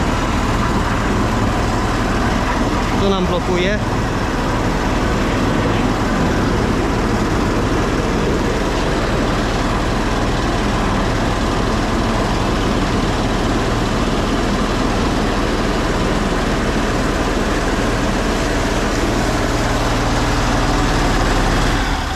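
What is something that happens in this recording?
A machine engine drones steadily and loudly nearby.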